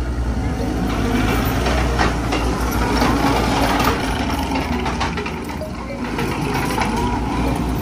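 Metal tracks clank and squeal as a skid steer loader drives closer.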